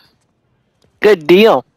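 A young woman exclaims in wonder.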